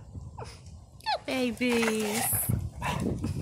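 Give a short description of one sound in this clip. A dog yelps with a high whine.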